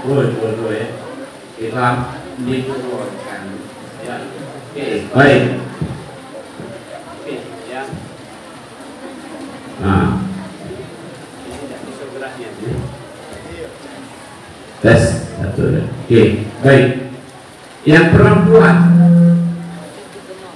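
An elderly man speaks and chants calmly into a microphone, heard through a loudspeaker.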